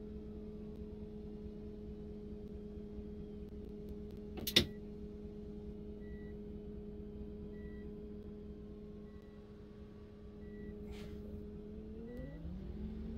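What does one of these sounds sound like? A bus engine idles with a steady low hum.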